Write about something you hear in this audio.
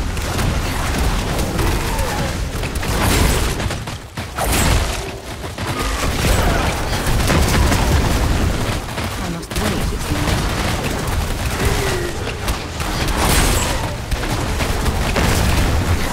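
Magic spells burst and whoosh in rapid succession.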